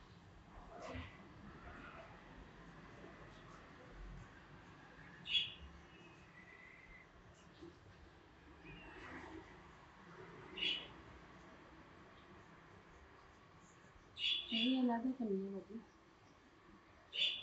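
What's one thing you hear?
Hands rub and rustle through hair.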